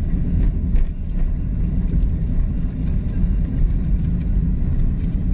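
A car engine rumbles steadily as the car drives along a road.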